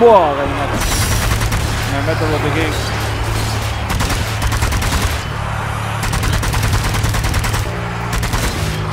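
An automatic gun fires rapid bursts.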